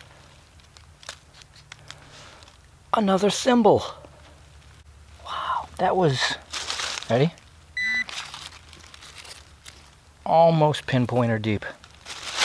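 Dry leaves rustle as hands dig in the ground.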